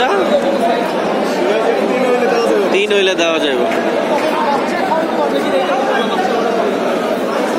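Pigeons coo softly close by.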